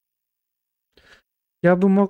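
A man speaks close to a microphone, loudly and with animation.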